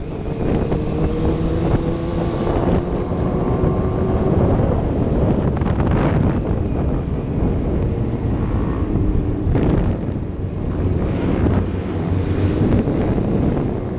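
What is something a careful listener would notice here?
A motorcycle engine roars and hums steadily up close.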